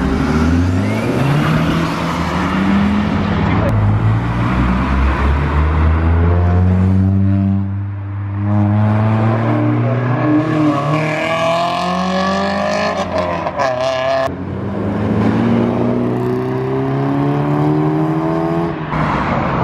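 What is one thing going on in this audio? Car engines roar loudly and climb in pitch as cars speed away one after another, close by.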